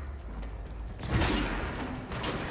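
A heavy rock smashes apart with a loud crash.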